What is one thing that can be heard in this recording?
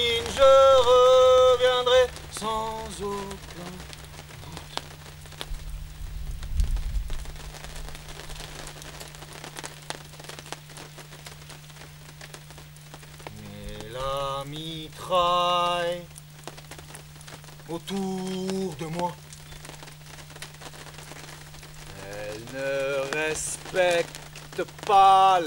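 A middle-aged man talks with animation close by, outdoors.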